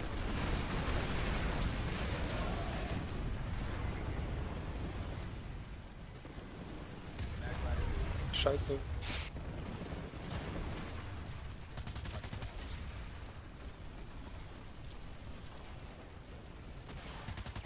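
Explosions boom and rumble close by.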